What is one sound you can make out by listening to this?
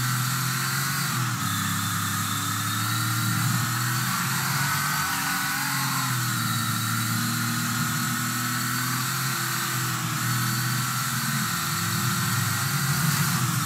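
A car engine hums steadily, its pitch rising and falling as the car speeds up and shifts gears.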